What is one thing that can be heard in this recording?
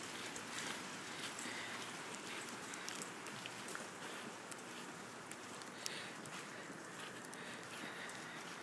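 Footsteps crunch on fresh snow.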